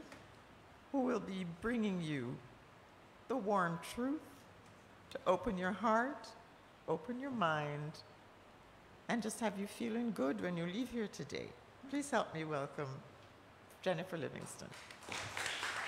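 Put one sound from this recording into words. An elderly woman speaks calmly into a microphone, with pauses between phrases.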